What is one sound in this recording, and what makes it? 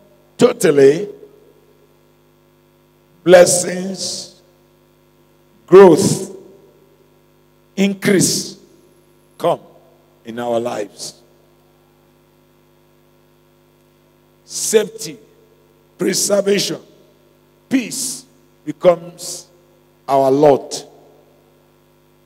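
A man preaches into a microphone in short, forceful phrases with long pauses, heard through loudspeakers in a reverberant hall.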